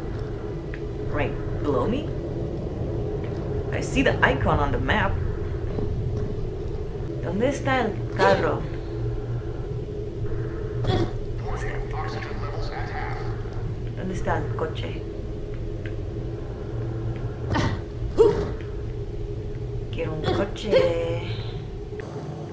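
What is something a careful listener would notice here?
A young woman talks casually into a nearby microphone.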